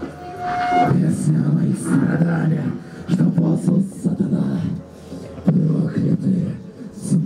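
Drums pound fast and heavy.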